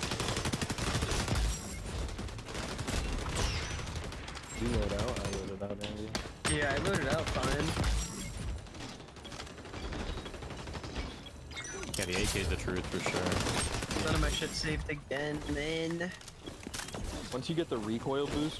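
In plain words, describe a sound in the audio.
Rapid gunfire cracks in quick bursts.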